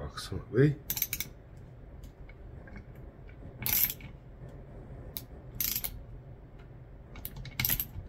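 A small wrench clicks and scrapes against metal.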